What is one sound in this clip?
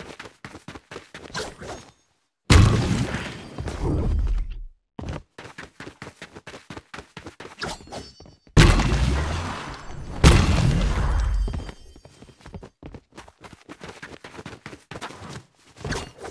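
Footsteps knock quickly on wooden planks.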